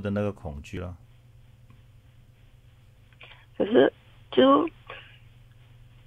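A man speaks briefly into a microphone in short phrases.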